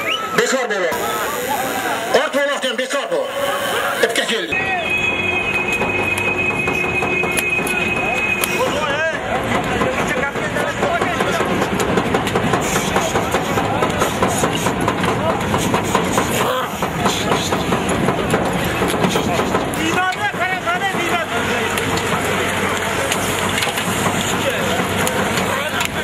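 A large outdoor crowd shouts and cheers.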